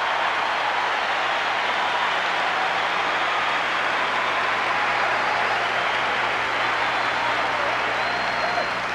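A huge crowd murmurs and chatters in a vast open stadium.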